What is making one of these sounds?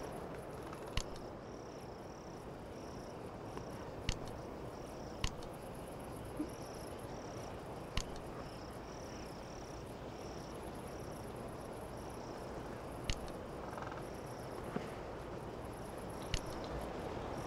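Short clicks of menu buttons sound now and then.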